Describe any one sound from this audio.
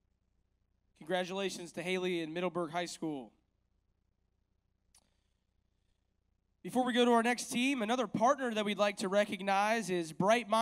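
A man speaks calmly into a microphone over a loudspeaker, with pauses.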